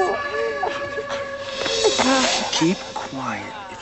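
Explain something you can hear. A woman gasps and cries out, muffled.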